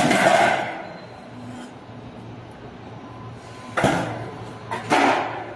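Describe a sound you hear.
Sheet metal clatters and rattles.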